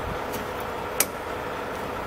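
A metal latch clicks as a fire extinguisher is pulled from its bracket.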